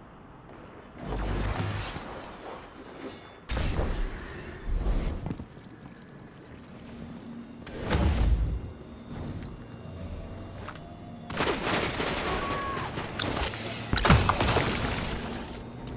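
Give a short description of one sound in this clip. Gunfire crackles in loud, rapid bursts.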